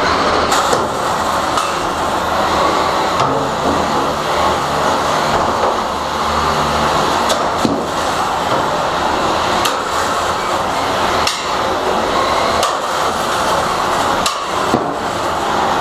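Metal robots bang and clank as they collide.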